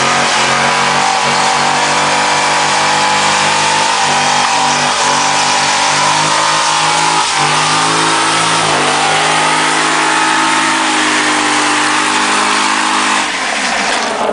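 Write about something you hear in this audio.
A car engine roars loudly at high revs.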